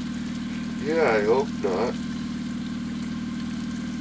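Bacon sizzles in a hot pan.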